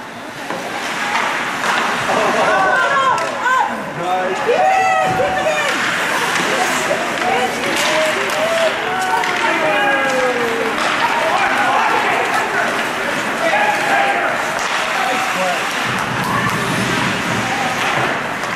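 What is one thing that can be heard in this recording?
Spectators shout and cheer in an echoing indoor rink.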